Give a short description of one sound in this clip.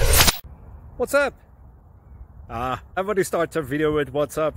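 A young man talks with animation close to a microphone, outdoors.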